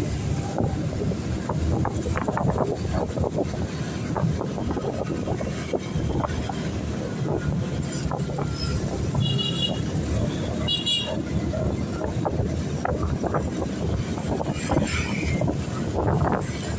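Wind rumbles past a microphone outdoors.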